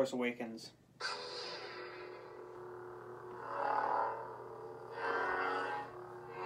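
A toy lightsaber switches on and hums steadily, swelling as it swings.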